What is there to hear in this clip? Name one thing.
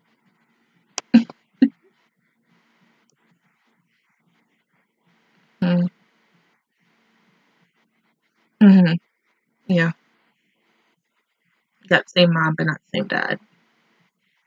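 A young woman makes short remarks close to a microphone.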